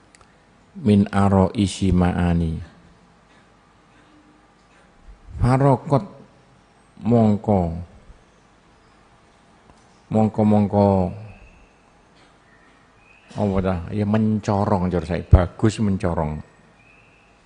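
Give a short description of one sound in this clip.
An elderly man recites in a slow, melodic chant into a microphone.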